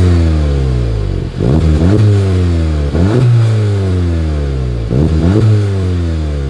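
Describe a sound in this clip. A car engine idles with a deep exhaust rumble.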